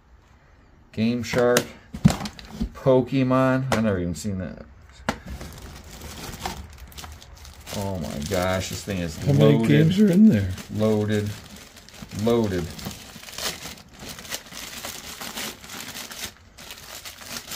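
Plastic game cases and cartridges clatter as they are handled.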